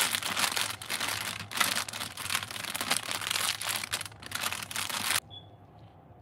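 Crinkly plastic packaging rustles and crackles loudly close by.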